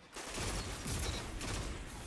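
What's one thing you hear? Rapid gunfire rattles from a rifle.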